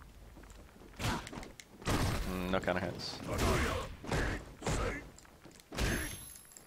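Punches and kicks land with heavy thuds and whooshes.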